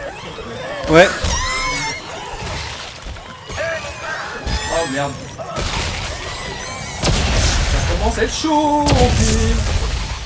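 A creature shrieks and screeches.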